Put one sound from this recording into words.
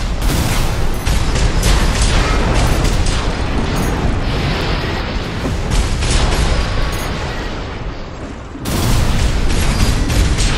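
Heavy gunfire and explosions roar in rapid bursts.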